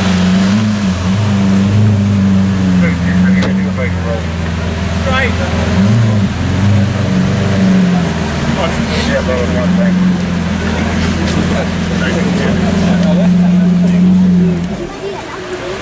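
A supercar engine idles with a deep, loud rumble, then shuts off.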